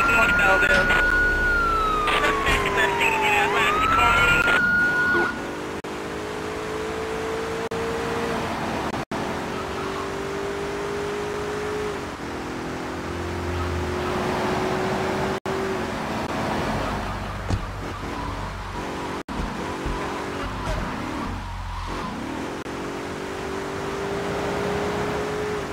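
A car engine revs up, shifting up through its gears.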